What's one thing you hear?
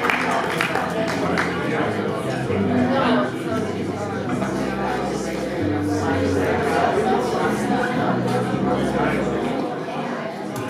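A small jazz band plays.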